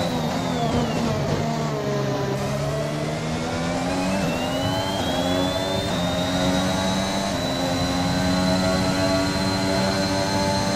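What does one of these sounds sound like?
A racing car engine drops in pitch as it slows, then revs up high as it accelerates.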